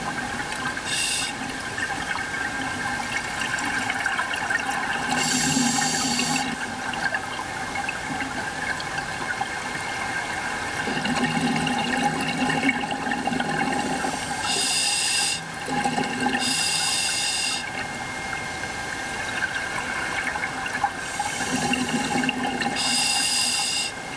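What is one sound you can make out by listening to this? A diver's breathing gear releases bursts of bubbles underwater, again and again.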